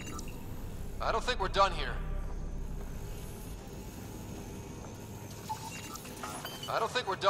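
An electronic scanner chirps and warbles.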